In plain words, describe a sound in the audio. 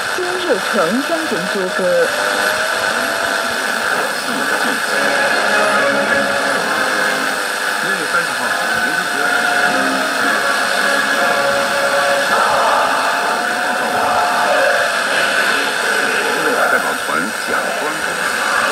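A shortwave radio hisses loudly with static through its small speaker.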